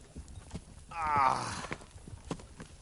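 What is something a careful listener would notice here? A man groans wearily.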